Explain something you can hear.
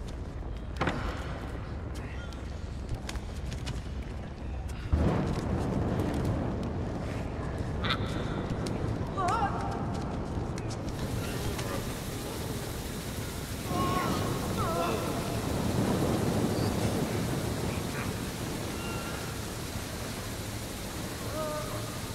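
A fire crackles and pops close by.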